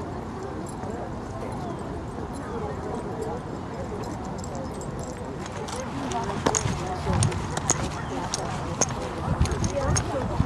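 Footsteps shuffle on pavement as a group walks.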